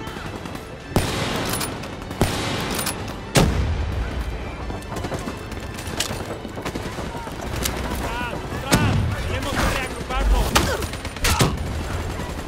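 Gunshots crack sharply, one at a time.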